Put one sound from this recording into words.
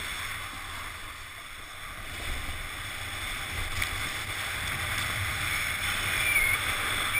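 A snowboard scrapes and hisses steadily over packed snow.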